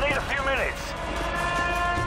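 An assault rifle fires rapid shots nearby.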